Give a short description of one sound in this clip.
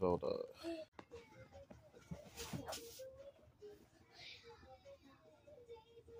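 Cartoon music plays from a television.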